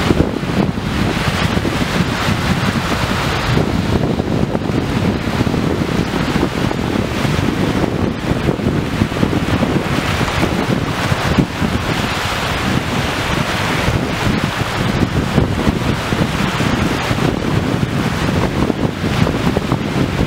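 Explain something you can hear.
Small waves wash onto a shore.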